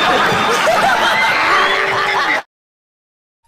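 A studio audience laughs loudly.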